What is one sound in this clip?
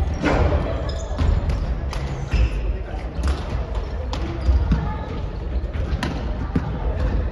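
A volleyball is struck by hands, with thuds echoing in a large gym.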